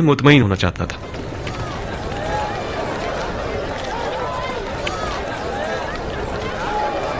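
A crowd murmurs.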